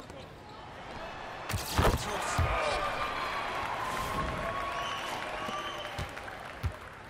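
A crowd cheers loudly and then settles.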